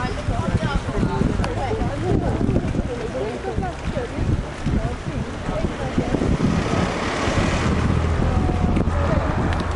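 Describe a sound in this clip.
A group of young men and women chatter and call out nearby outdoors.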